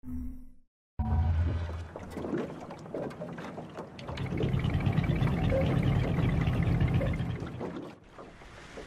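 A boat engine starts and rumbles low and loud.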